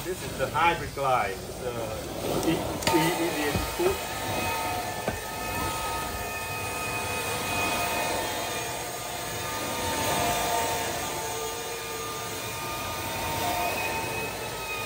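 A cleaning wand swishes back and forth over carpet.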